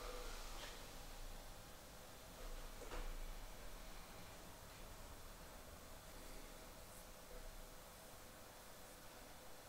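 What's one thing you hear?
A robot vacuum hums steadily as it moves across a hard floor.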